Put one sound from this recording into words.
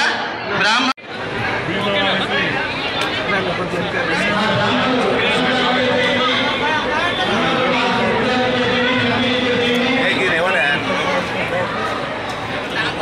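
A middle-aged man speaks firmly into microphones close by.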